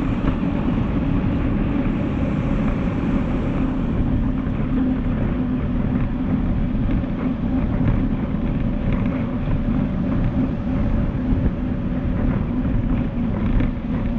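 Wind rushes and buffets steadily as a bicycle rides quickly.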